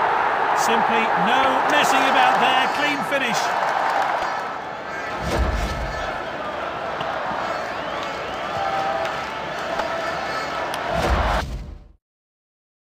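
A stadium crowd cheers and roars loudly.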